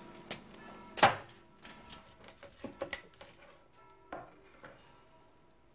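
A cleaver chops through a raw chicken onto a cutting board.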